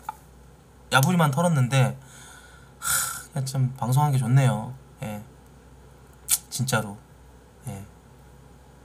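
A man talks casually and close to a microphone, in short bursts.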